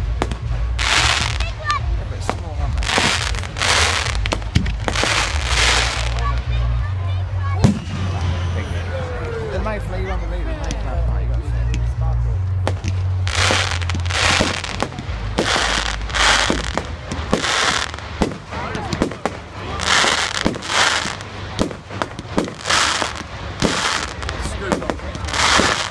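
Fireworks explode with sharp bangs in the distance.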